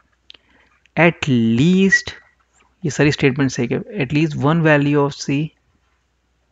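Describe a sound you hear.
A man speaks calmly and slowly into a close microphone.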